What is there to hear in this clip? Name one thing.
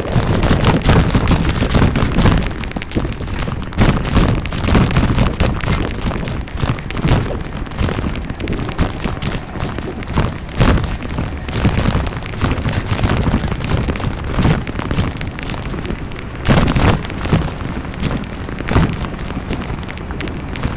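Wind rumbles and buffets against the microphone in gusts.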